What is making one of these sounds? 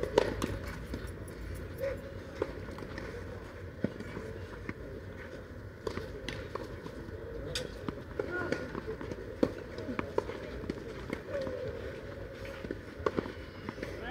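Tennis balls are struck with rackets in a rally, outdoors.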